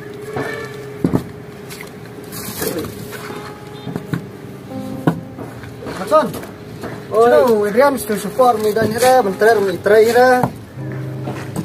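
Bricks clack as they are set down and picked up.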